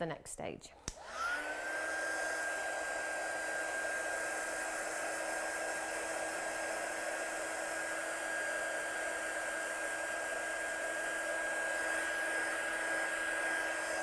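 A heat gun whirs and blows air steadily.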